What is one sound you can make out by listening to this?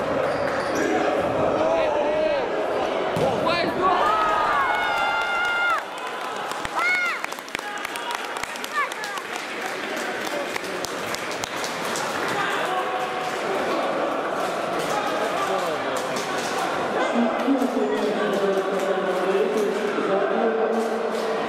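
Young men shout and cheer in an echoing indoor hall.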